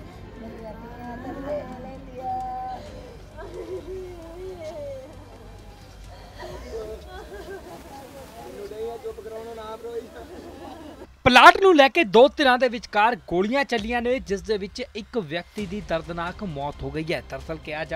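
Women wail and cry loudly nearby.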